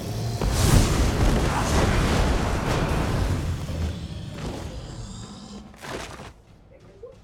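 Magic frost energy crackles and roars in bursts.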